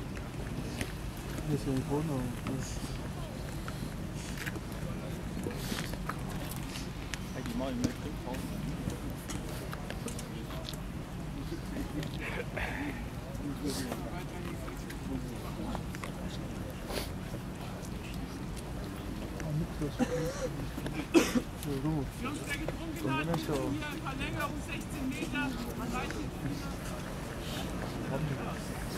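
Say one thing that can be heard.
Men talk and call out at a distance outdoors.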